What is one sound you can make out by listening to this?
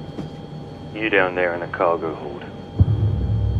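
A man speaks tensely.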